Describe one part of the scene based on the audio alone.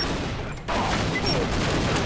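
A rifle fires a rapid burst of gunshots.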